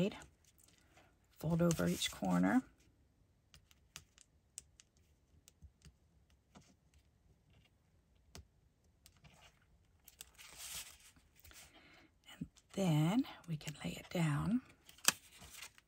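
Hands shift and press pieces of cardstock.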